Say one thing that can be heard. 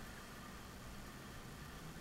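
A hand brushes over a quilt with a soft rustle.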